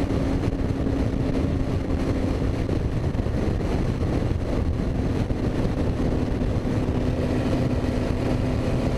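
Wind roars past in an open cockpit.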